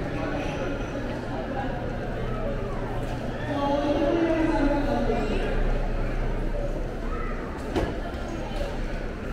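Voices murmur faintly in a large, echoing hall.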